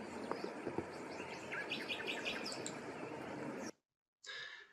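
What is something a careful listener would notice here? Ducks dabble and splash softly in shallow water.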